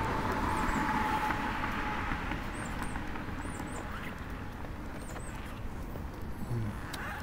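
Footsteps walk along a paved path outdoors.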